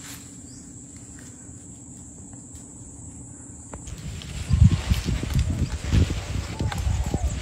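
A large lizard crawls over dry leaves, rustling and crunching them.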